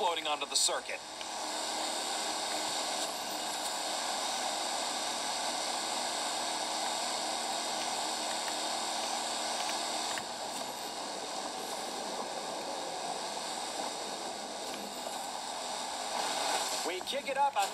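Water sprays and hisses steadily behind a speeding boat.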